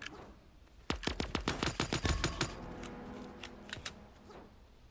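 Rapid video game gunfire crackles in bursts.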